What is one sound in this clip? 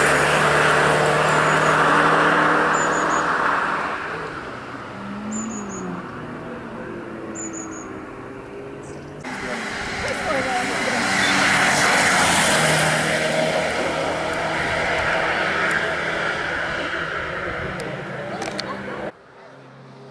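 A rally car engine roars as the car speeds along a winding road.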